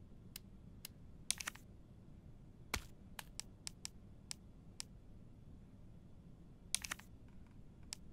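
Short menu clicks tick as a cursor moves between items.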